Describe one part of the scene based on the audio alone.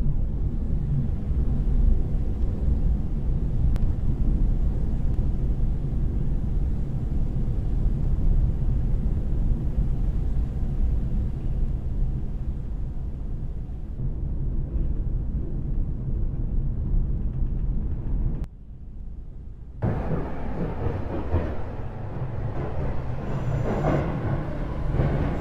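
An electric train rumbles steadily along the tracks.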